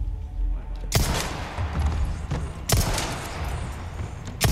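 Gunshots bang loudly, one after another, in a large echoing hall.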